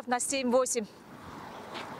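A woman speaks into a microphone outdoors.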